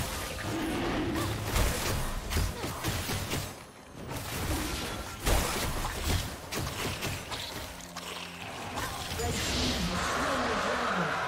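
Magic blasts and sword hits clash rapidly in a video game fight.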